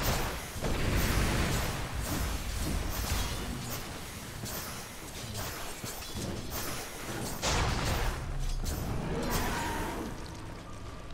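Game spell effects crash and whoosh in a battle.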